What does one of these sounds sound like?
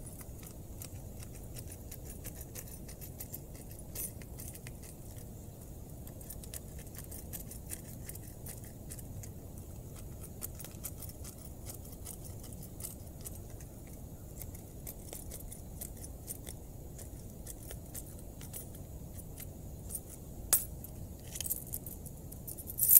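Small clicks and scrapes come from hands working on a small object close by.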